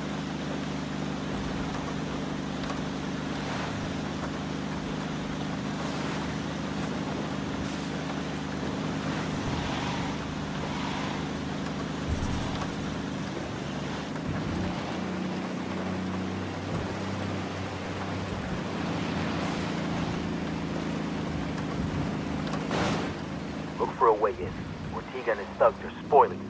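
A pickup truck engine hums steadily as it drives along a wet road.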